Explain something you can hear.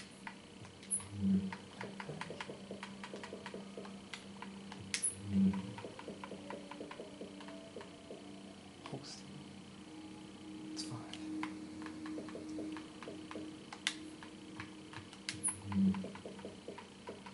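Soft menu clicks tick quickly as a game menu is browsed.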